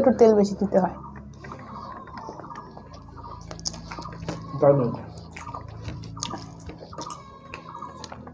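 People chew food with wet smacking sounds.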